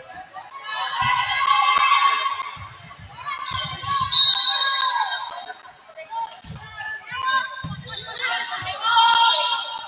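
A volleyball is struck with sharp thuds.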